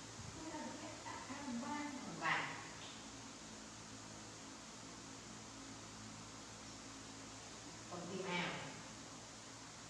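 A young woman talks softly nearby.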